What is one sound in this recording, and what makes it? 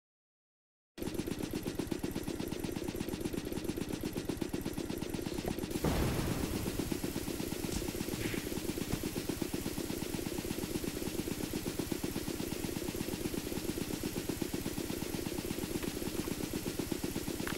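An electric generator buzzes steadily.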